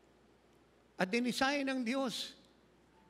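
An elderly man calls out loudly through a microphone.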